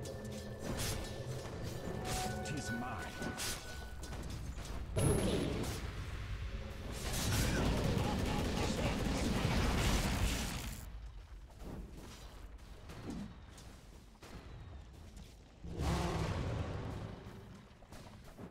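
Game spells and weapons clash and burst in a battle.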